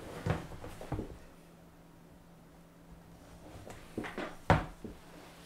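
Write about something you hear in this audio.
Hands knock and bump against a device close to the microphone.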